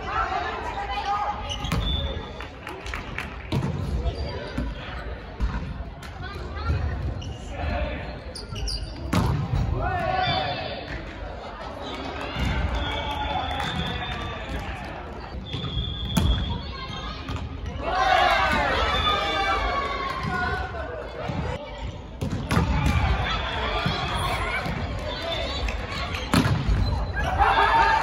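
Men and women shout and call out to each other in a large echoing hall.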